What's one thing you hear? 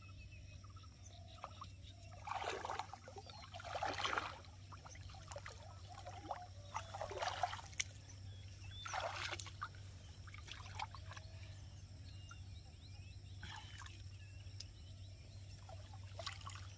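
Water sloshes and trickles as a man scoops with a metal pot.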